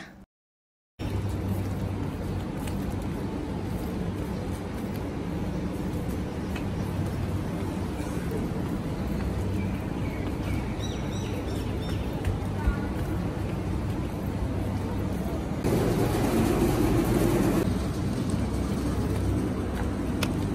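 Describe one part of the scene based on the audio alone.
Plastic shopping bags rustle.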